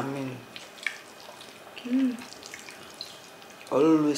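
A woman chews and smacks food close to a microphone.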